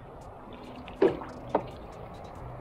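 A plastic bucket knocks twice against a hard floor.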